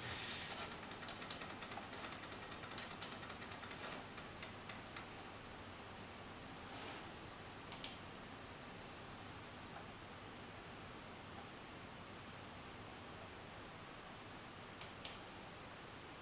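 Laptop keys and a touchpad click now and then.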